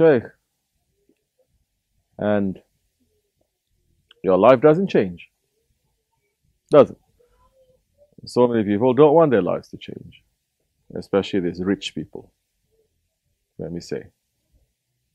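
A man speaks calmly and slowly into a nearby microphone, with long pauses.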